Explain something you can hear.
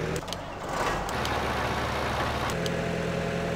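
A harvester engine rumbles while cutting crops.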